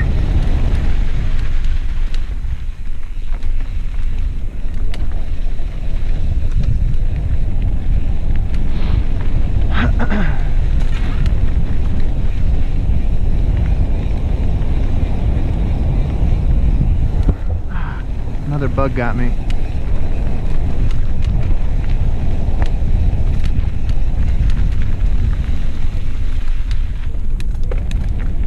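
Mountain bike tyres roll over a dirt trail.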